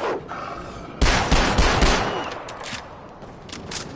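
A pistol is reloaded with sharp metallic clicks.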